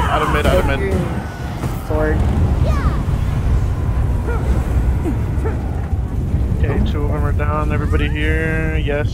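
Magic spells whoosh and crackle over a deep, steady rumble.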